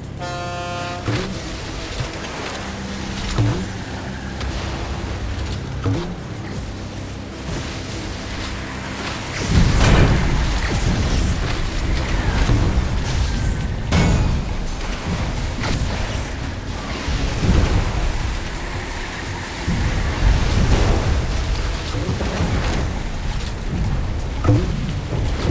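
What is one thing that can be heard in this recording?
Water splashes and sprays around a speeding boat.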